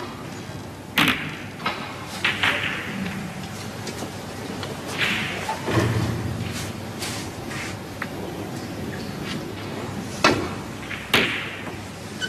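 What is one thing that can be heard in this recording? Snooker balls knock together on the table.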